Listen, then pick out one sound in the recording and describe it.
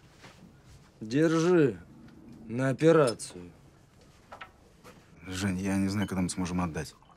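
A man speaks in a low, tense voice nearby.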